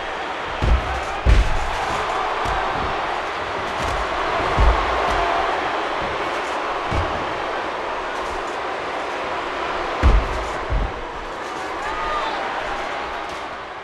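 A large crowd cheers and roars steadily in an arena.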